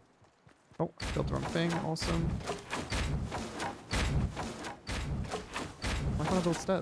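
Building pieces snap into place in quick succession.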